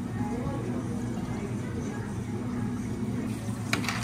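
Milk pours into a glass.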